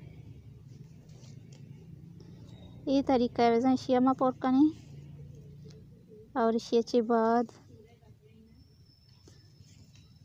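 A needle and thread pull softly through thick cloth.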